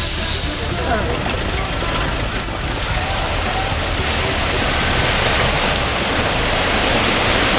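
A car engine rumbles as the car drives slowly through a river.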